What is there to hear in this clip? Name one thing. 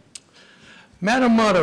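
A middle-aged man begins speaking into a microphone.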